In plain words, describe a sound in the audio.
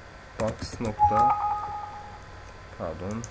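A computer alert chime sounds once.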